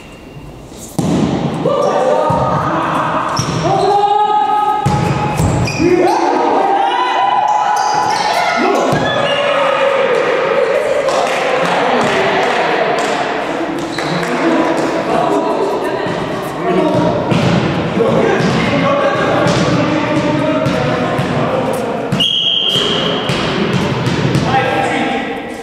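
Young men shout and call out with animation across the court.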